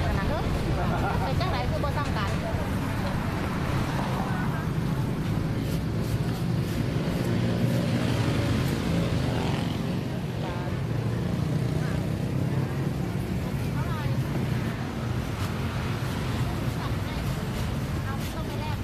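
Traffic rumbles steadily close by.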